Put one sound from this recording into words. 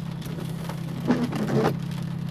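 Windshield wipers sweep across the glass.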